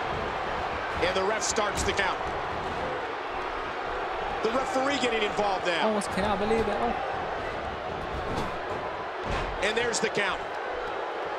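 Heavy blows thud and slam on bodies and the ring mat.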